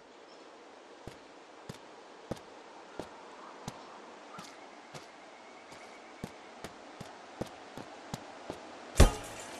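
Footsteps tread steadily over the ground.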